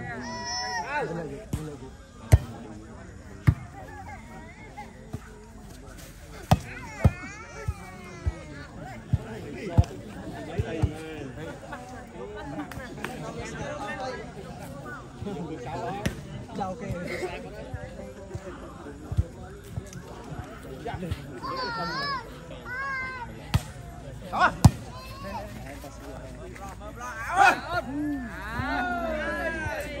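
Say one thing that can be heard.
A crowd of young men and women chatters and calls out outdoors.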